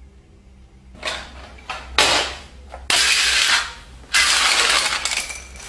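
Small objects clatter onto a floor.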